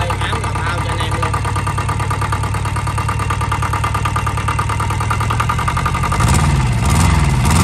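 A diesel engine idles with a steady, rapid knocking.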